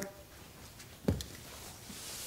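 A box thuds down onto a wooden table.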